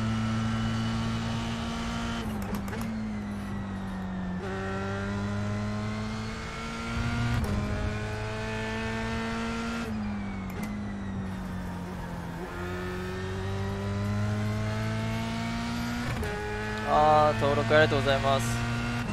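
A racing car engine roars, revving up and dropping with each gear change.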